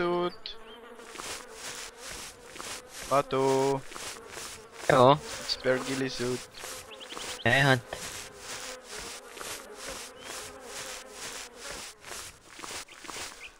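A person crawls through grass with rhythmic rustling.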